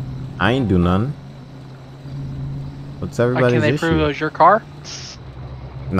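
A car engine hums low as the car rolls slowly forward.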